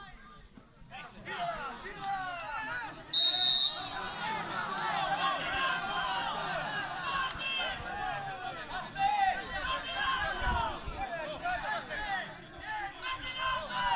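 Men in a crowd of spectators talk and call out nearby outdoors.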